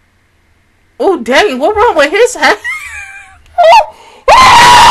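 A young woman laughs loudly and excitedly, close to a microphone.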